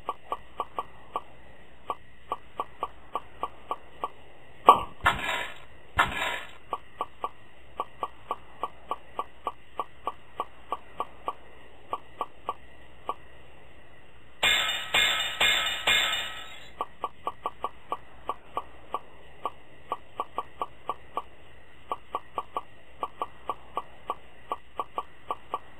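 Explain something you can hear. Quick game clicks pop one after another as eggs are collected.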